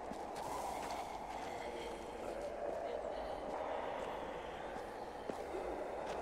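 Footsteps crunch slowly through dry grass.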